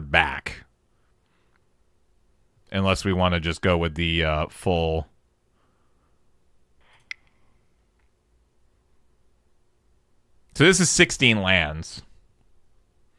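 A man talks with animation through a headset microphone.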